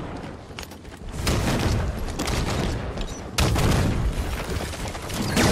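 Gunfire rattles and bullets spark against a wall.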